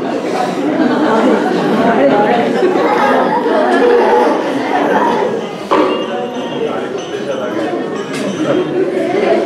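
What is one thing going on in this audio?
A crowd of children and adults chatters and murmurs close by.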